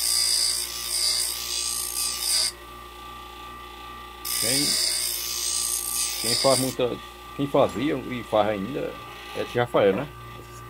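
A bench grinder motor hums steadily.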